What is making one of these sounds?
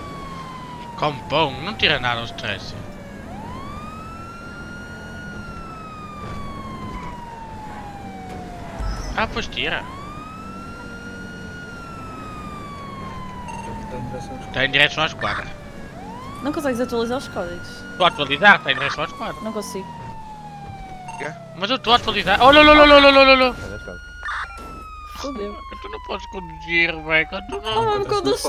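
A police siren wails, rising and slowly falling, over and over.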